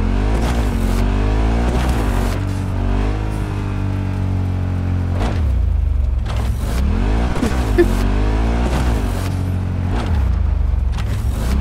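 A motorcycle engine roars and revs up and down.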